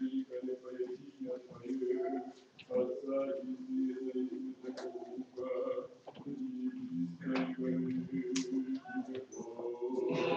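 A man chants in a steady, sung voice, echoing in a reverberant room.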